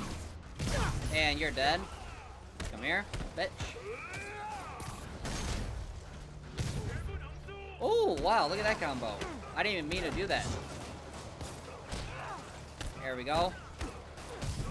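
Men shout and grunt while fighting.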